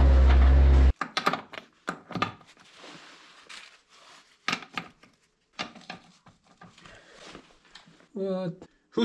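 Metal clicks and clinks as a man works the nuts on a wheel.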